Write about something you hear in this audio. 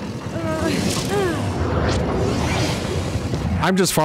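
A magical energy blast bursts with a whoosh.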